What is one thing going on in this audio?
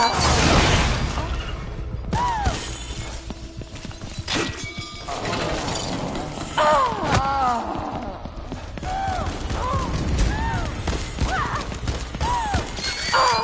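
Footsteps thud as a man runs.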